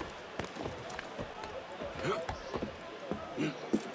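Hands and feet knock on a wooden ladder while climbing.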